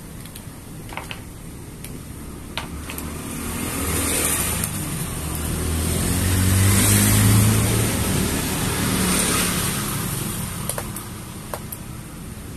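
A staple gun snaps sharply several times.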